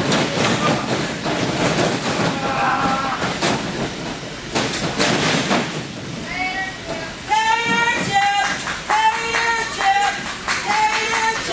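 A small crowd shouts and cheers in an echoing hall.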